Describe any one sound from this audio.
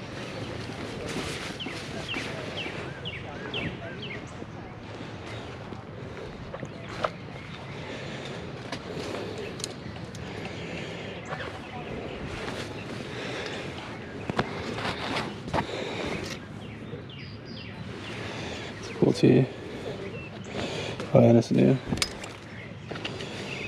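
Fabric rustles as hands push through hanging garments.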